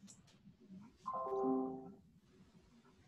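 A computer notification chime sounds.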